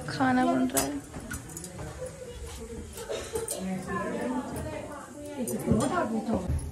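Women talk with animation nearby.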